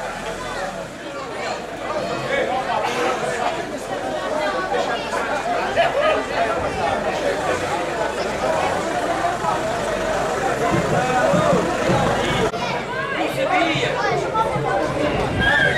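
Large bass drums boom loudly outdoors.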